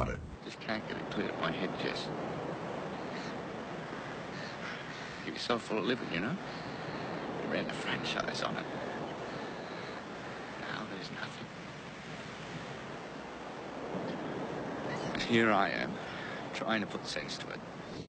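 A man speaks quietly and emotionally, close by.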